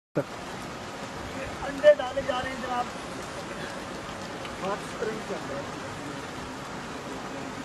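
Hot water bubbles and hisses steadily.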